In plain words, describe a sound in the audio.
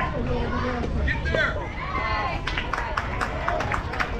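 A bat strikes a softball with a sharp crack.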